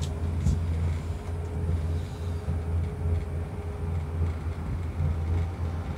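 A cable car rattles as it passes over a pylon.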